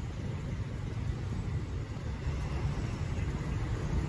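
A bus engine idles nearby with a low rumble.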